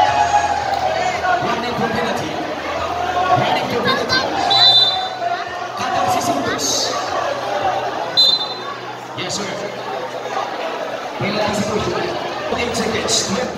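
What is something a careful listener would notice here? A large crowd chatters and cheers loudly in a big echoing space.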